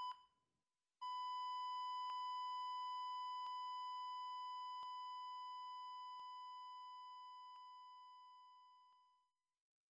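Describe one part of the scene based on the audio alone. A heart monitor sounds one long, steady tone that slowly fades away.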